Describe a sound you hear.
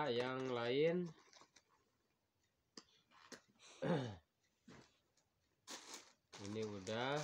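Plastic packets rustle and crinkle close by.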